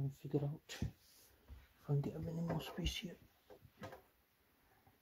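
Hands handle a cable and plug with soft rustling and knocks.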